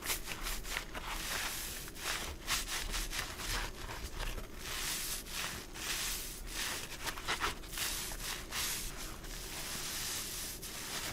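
Gloved hands squeeze a wet sponge, which squishes and crackles up close.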